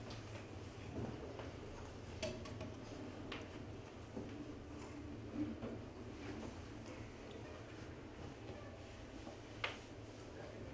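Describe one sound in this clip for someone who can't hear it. A metal cup clinks softly on a table.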